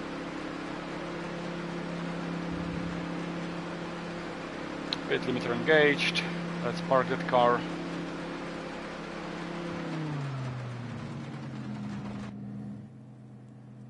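A car engine hums steadily, then winds down as the car slows.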